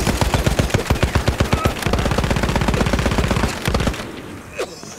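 A machine gun fires rapid bursts at close range.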